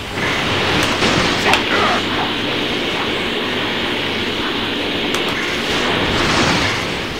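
A powerful energy blast roars and rushes steadily.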